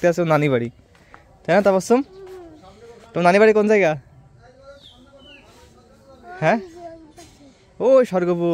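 A young child talks close by in short bursts.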